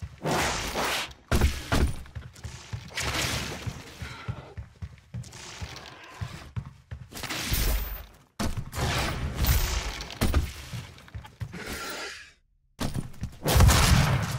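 A gun fires with loud bangs and fiery blasts.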